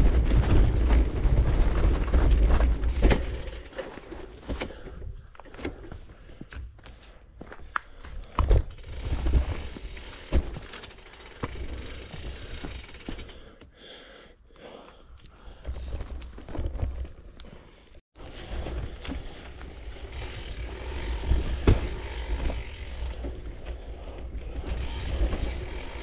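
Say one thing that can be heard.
Wind rumbles past a moving rider.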